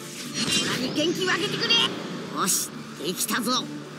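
A young man shouts with effort.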